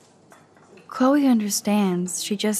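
A woman speaks calmly and gently, close by.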